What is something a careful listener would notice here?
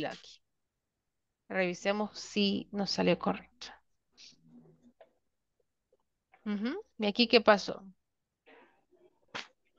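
A woman speaks calmly into a microphone, in short bursts.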